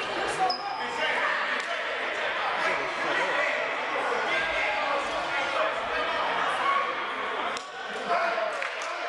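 A crowd of young men and spectators chatters in a large echoing gym.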